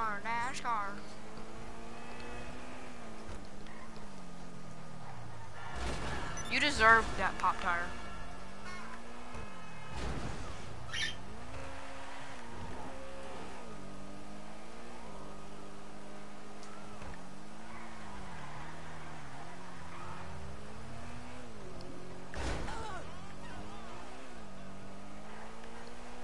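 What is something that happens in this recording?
A car engine roars, rising and falling as it speeds up and slows down.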